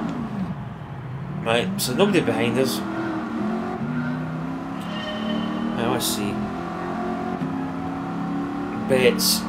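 A racing car engine roars and climbs in pitch as the car speeds away.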